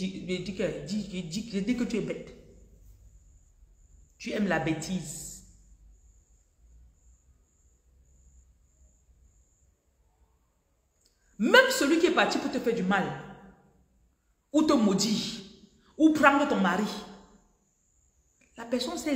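A young woman speaks with animation close to the microphone, pausing now and then.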